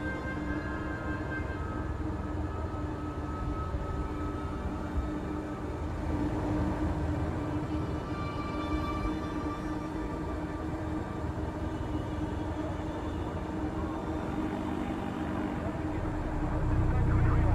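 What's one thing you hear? A spacecraft engine hums steadily.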